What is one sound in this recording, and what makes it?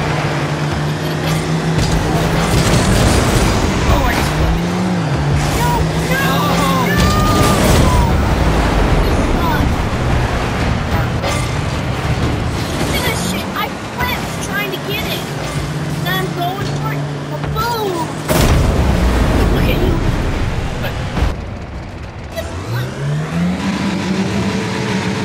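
Car engines hum and boost in a video game.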